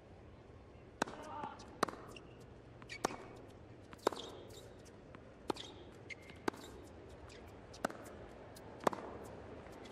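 Tennis balls are struck hard with rackets in a rally.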